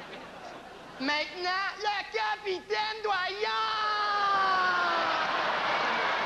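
A young woman sings loudly on a stage.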